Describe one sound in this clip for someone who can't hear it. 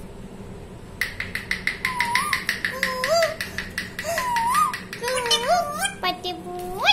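A plastic cap clicks rapidly against a parrot's beak.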